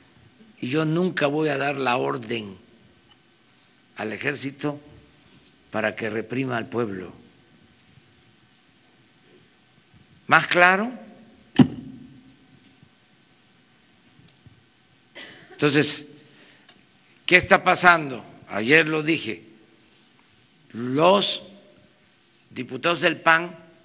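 An elderly man speaks slowly and deliberately through a microphone, with long pauses.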